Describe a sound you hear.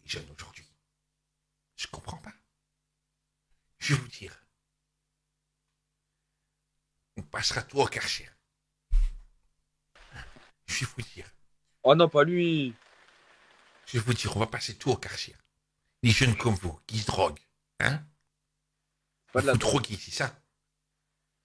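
A middle-aged man speaks with animation into a microphone, in short bursts.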